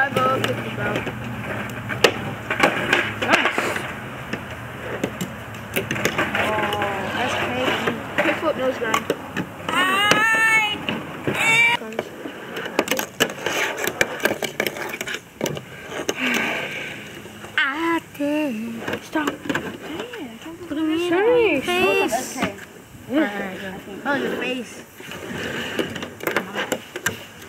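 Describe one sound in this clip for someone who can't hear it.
A small fingerboard clacks and rolls across a hard table.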